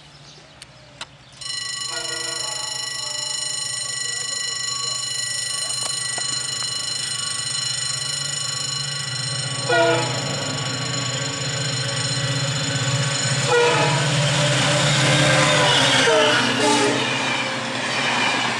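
A diesel locomotive rumbles, growing louder as it approaches.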